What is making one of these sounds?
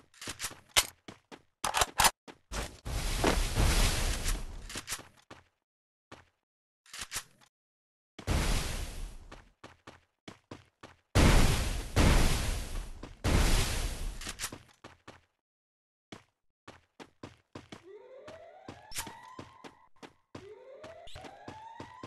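Footsteps patter quickly on hard pavement.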